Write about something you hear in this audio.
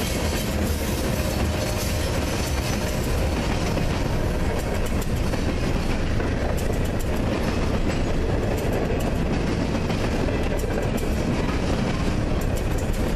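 Freight car wheels clack over rail joints.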